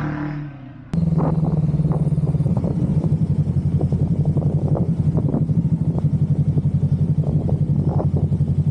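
A motorcycle engine drones steadily.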